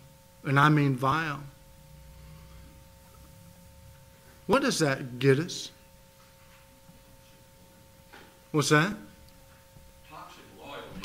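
A middle-aged man speaks slowly and emphatically into a microphone in a large, echoing hall.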